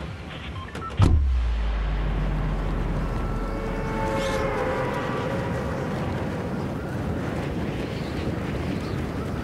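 Air rushes loudly past a diving figure.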